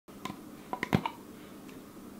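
A plastic cup lid clicks and taps close by.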